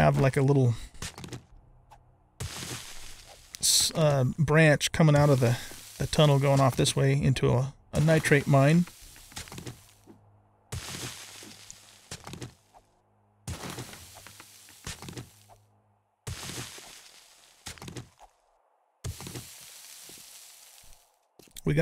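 A pickaxe strikes rock again and again.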